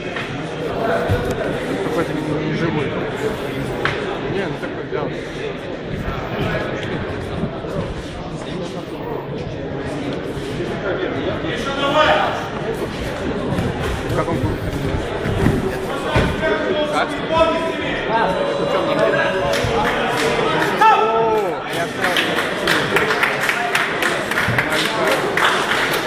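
A crowd of men talks and shouts in an echoing hall.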